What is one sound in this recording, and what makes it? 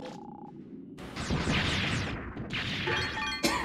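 An explosion bursts with a crackling blast.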